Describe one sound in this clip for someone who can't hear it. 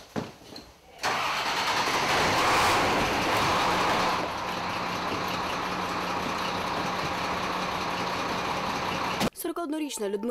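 A fire engine's motor roars loudly.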